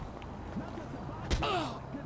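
A fist lands a hard punch on a man.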